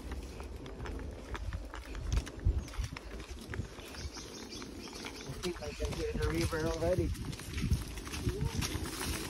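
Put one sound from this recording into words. Horse hooves thud steadily on a dirt trail.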